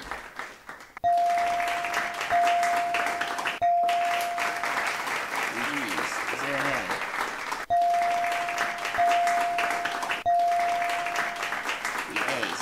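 Bright electronic chimes ring out one after another.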